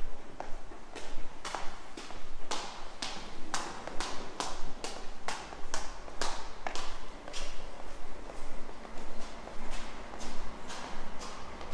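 Footsteps walk steadily down hard stairs, echoing off the walls.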